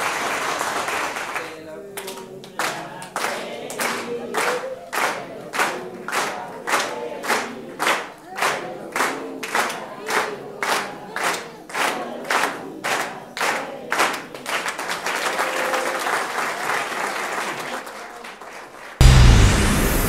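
A crowd of children and adults sing together.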